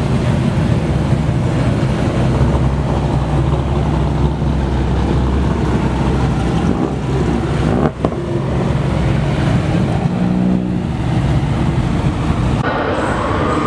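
A sports car engine idles with a deep rumble and drives slowly away.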